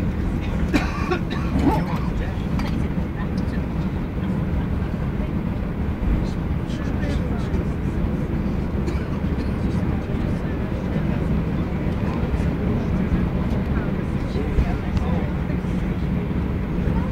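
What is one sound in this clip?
A jet engine roars steadily inside an aircraft cabin.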